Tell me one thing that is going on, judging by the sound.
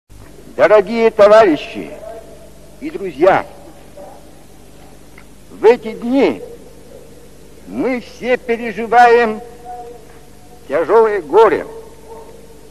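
A man speaks slowly and solemnly, with long pauses.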